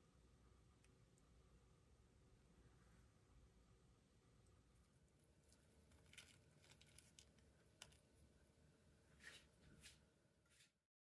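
A crisp fried cutlet crackles as hands pull it apart.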